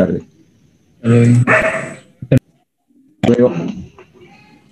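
A young man speaks through an online call.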